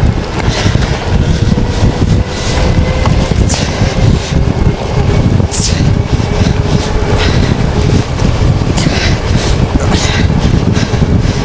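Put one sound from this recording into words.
Wind buffets the microphone outdoors with a low rumble.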